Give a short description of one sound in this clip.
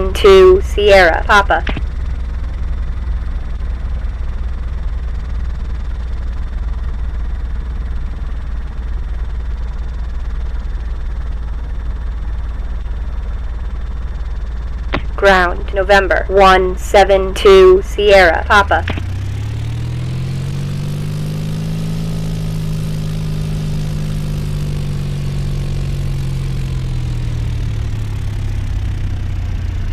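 An aircraft engine drones steadily, then revs up and rises in pitch.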